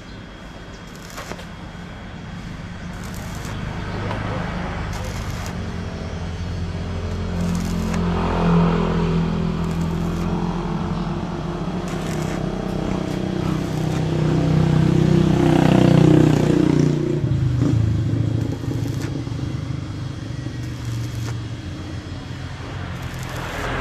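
An electric welder buzzes and crackles steadily.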